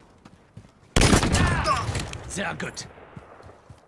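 Gunfire bursts out loudly.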